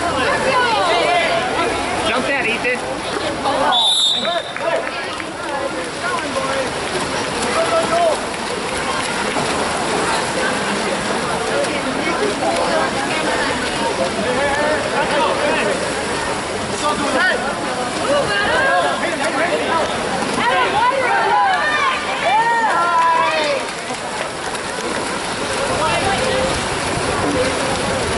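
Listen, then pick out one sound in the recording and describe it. Swimmers splash in the water.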